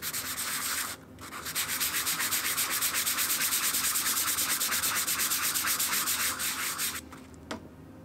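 Sandpaper rubs back and forth rapidly on wood.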